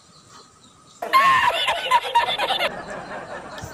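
A man laughs heartily and wheezes.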